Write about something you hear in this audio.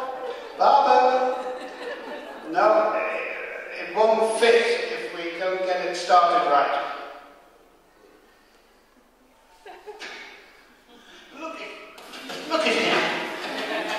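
An elderly man speaks with animation into a microphone in a reverberant hall.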